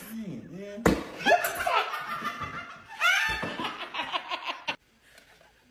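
Young women shriek and laugh.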